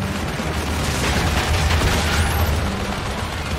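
An explosion bursts close by.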